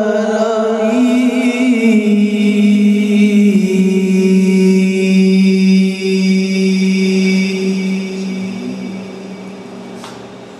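A man sings a long, drawn-out note into a microphone, heard through loudspeakers, then the note fades away.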